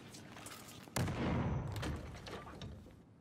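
A gun fires a loud burst of shots close by.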